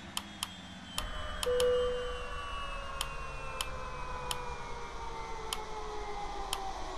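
Jet engines whine, their pitch slowly falling.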